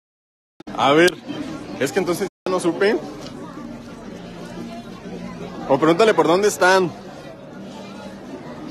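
A crowd murmurs outdoors in a busy street.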